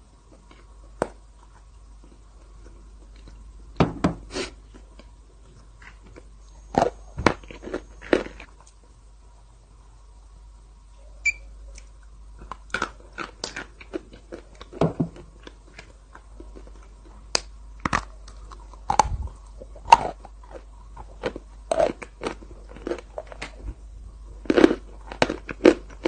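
A young woman chews and smacks her lips close up.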